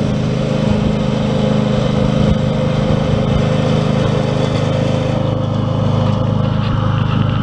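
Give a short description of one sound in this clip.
A ride-on mower engine drones steadily close by.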